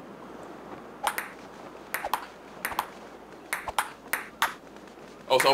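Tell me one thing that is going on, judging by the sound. A ping-pong ball clicks back and forth on a table and paddles.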